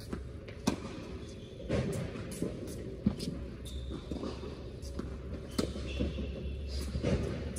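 Sneakers squeak and shuffle on a hard court.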